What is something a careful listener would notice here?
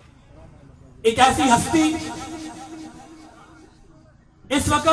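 A man preaches loudly and with fervour through a microphone and loudspeakers, echoing outdoors.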